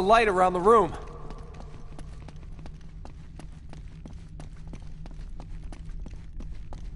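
Quick footsteps run over stone.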